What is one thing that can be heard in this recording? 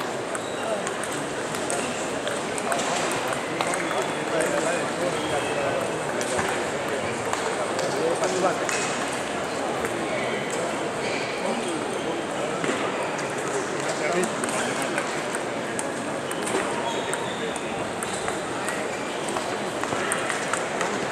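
Table tennis balls click sharply on tables and paddles nearby and all around.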